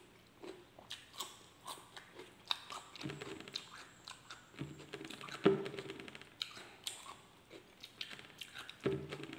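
A man chews food noisily with his mouth close by.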